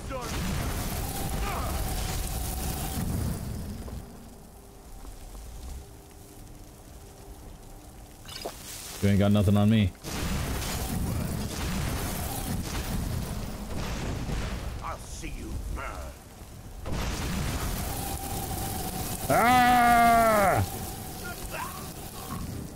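A magic spell crackles and hisses in bursts.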